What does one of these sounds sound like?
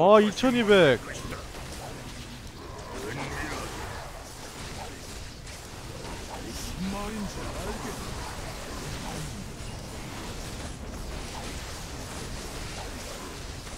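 Swords clash and spells crackle in a battle.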